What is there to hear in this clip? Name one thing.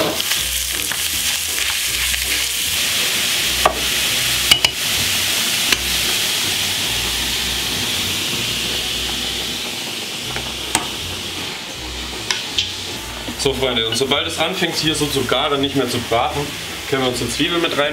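A spatula scrapes against a metal pan.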